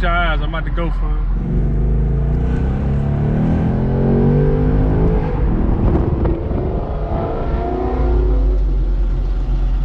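A car engine rumbles and revs up.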